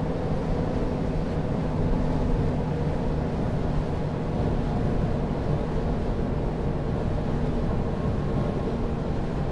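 Bus tyres roll over the road.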